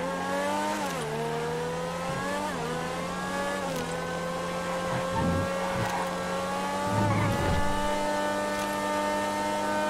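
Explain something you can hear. A race car engine whines loudly, rising and dropping in pitch as gears shift.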